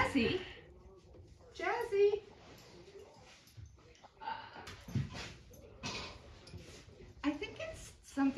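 A young woman talks and squeals playfully close by.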